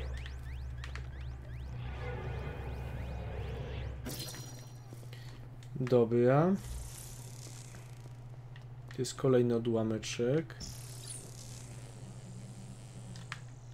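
Magical energy whooshes and crackles in a game.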